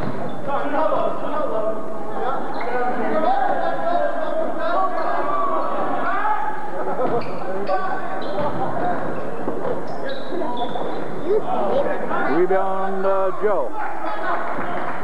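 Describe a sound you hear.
Young men shout and call out to one another in a large echoing gym.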